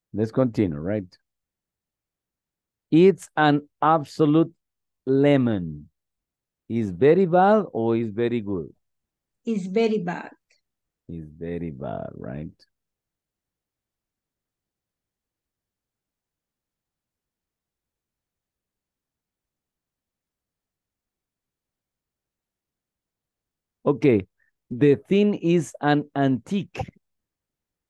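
A man speaks calmly through an online call microphone.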